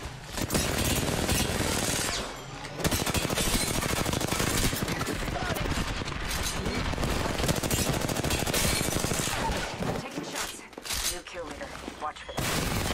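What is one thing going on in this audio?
A man talks through a headset microphone with animation.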